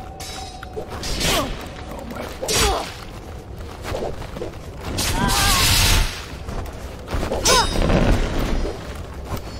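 Swords swing and clash in a video game.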